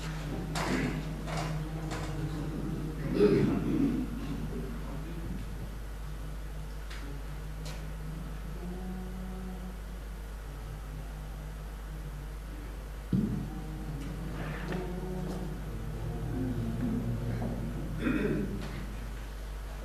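A choir of men sings together in a reverberant hall.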